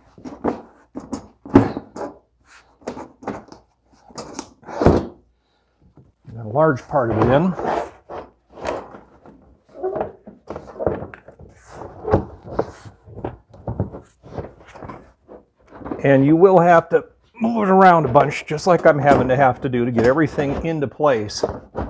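A plastic wheel-well liner scrapes and clicks as it is pushed into place.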